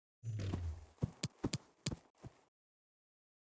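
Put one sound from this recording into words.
A game menu clicks sharply several times.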